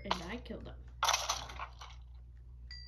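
Stone blocks crunch as they are dug in a video game, heard through a small device speaker.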